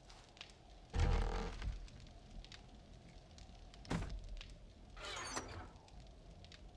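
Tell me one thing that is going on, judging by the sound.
A wooden lid opens with a short scraping rustle.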